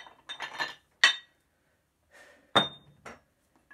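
Weight plates clank together.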